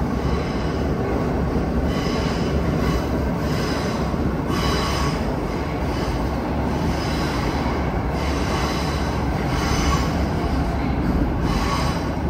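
A subway train rumbles loudly along the tracks at speed.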